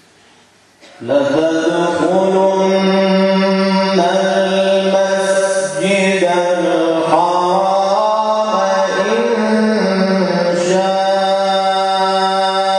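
An adult man chants in a long, sustained melodic voice through a microphone, echoing in a large room.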